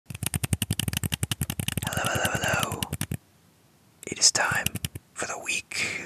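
Small plastic objects click and tap rapidly close to a microphone.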